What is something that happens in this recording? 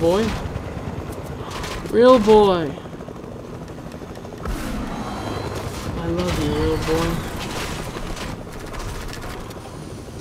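A helicopter's rotor whirs steadily.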